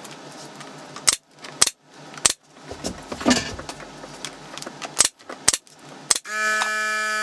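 A nail gun fires with sharp, loud bangs several times.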